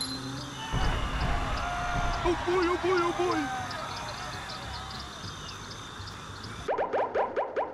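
Cartoon game sound effects sparkle and whoosh.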